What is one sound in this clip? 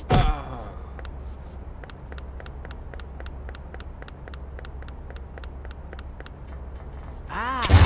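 Quick footsteps run steadily across a hard floor.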